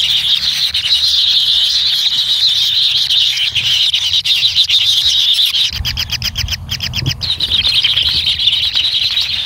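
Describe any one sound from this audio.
Kingfisher nestlings make shrill begging calls.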